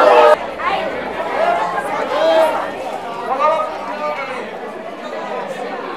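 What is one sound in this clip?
A man shouts through a megaphone.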